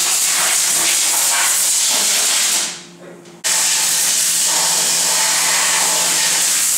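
Compressed air hisses from a blow gun.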